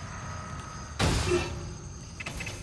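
A metal locker clanks open.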